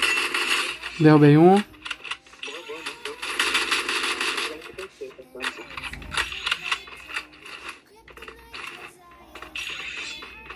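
Game sounds and gunfire play from a phone's small speaker.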